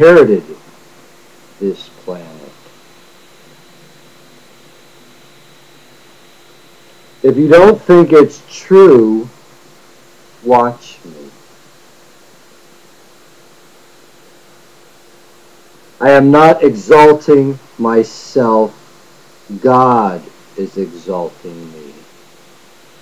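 A middle-aged man speaks calmly and close to a microphone, in short bursts with long pauses.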